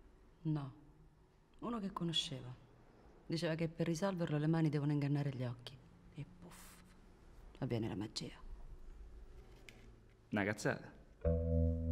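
A woman speaks calmly and quietly, close by.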